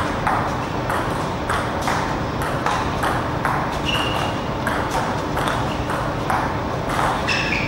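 A ping-pong ball clicks back and forth off paddles and a table in a quick rally.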